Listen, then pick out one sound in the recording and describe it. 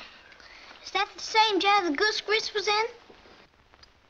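A young boy speaks.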